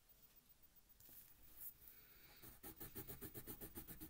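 A pencil scratches rapidly back and forth on paper, close by.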